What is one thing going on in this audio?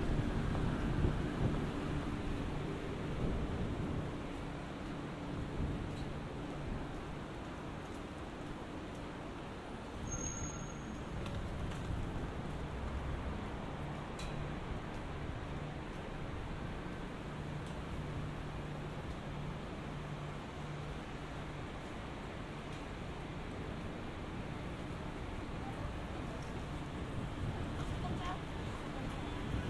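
City traffic hums steadily nearby outdoors.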